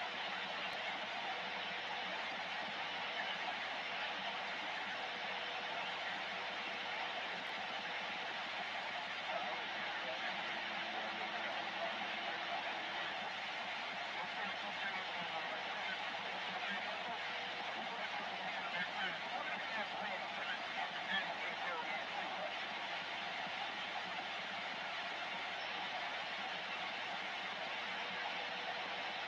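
Radio static hisses steadily from a receiver's loudspeaker.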